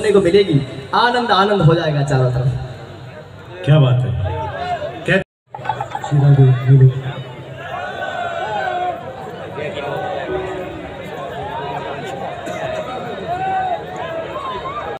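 A man sings loudly through loudspeakers.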